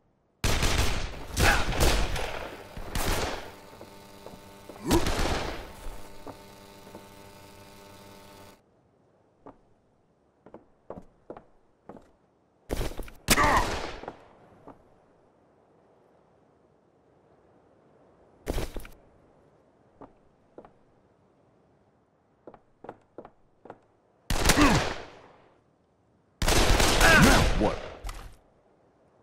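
Gunshots ring out in loud, echoing bursts.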